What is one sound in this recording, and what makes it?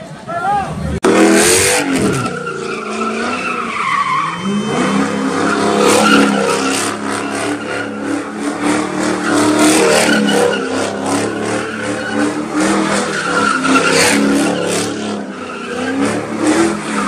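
A car engine revs hard and roars close by.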